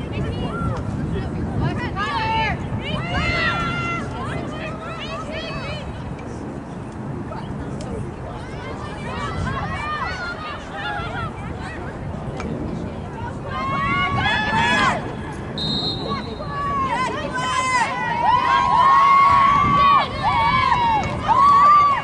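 Young women shout and call to each other across an open outdoor field.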